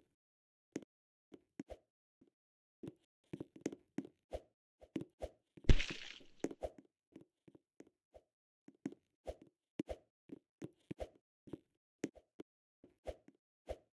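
Soft thuds of a game character's footsteps and jumps sound in short bursts.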